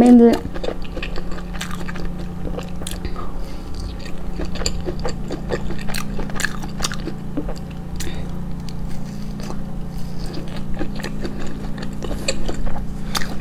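A young woman chews grilled skewered meat with wet, smacking sounds close to the microphone.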